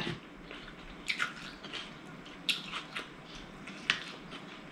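A woman makes small eating and lip-smacking sounds up close.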